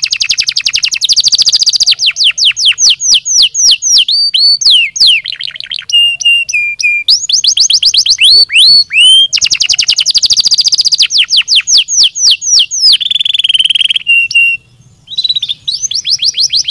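A canary sings loudly and close by, with rapid trills and whistles.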